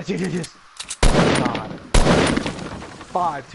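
A rocket explodes with a loud boom.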